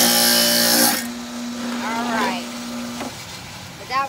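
A table saw motor winds down to a stop.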